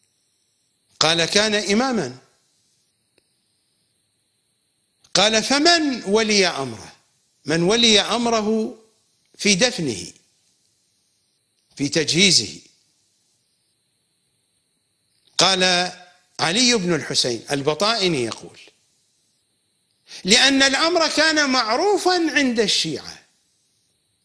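A middle-aged man speaks slowly and with emphasis into a close microphone, with long pauses.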